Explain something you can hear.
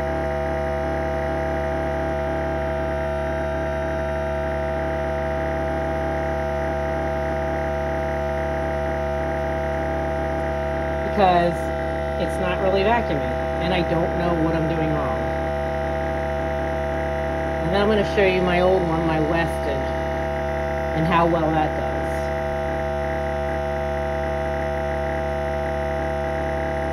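A vacuum sealer's pump hums steadily.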